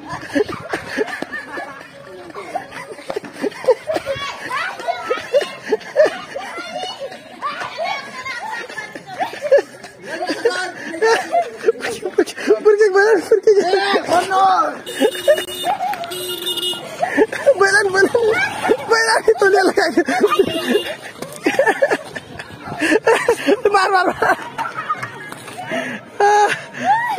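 A young boy talks cheerfully close by.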